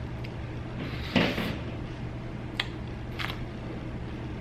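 A woman bites and chews a juicy strawberry close to a microphone.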